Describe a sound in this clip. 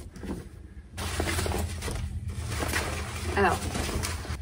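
A bag flaps loudly close by.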